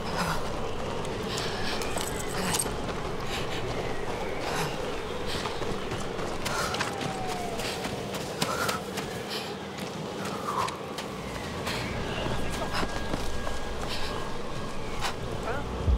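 Footsteps crunch in snow at a walking pace.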